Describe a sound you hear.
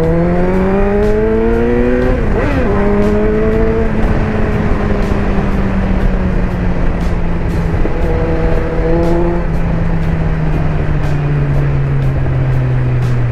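A motorcycle engine hums and revs, rising and falling in pitch as the bike rides along.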